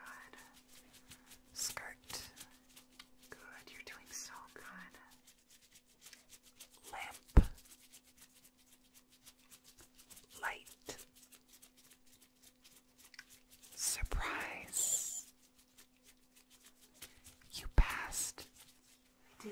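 Latex gloves rustle and squeak as hands move.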